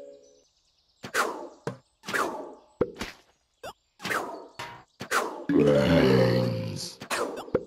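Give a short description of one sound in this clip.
Game peas pop and splat in quick, repeated bursts.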